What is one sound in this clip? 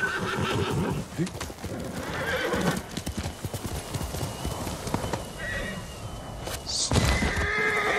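A horse gallops with hooves thudding on the ground.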